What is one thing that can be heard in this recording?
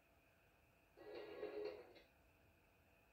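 A television plays a short burst of video game sound.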